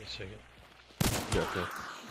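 A revolver fires a loud shot.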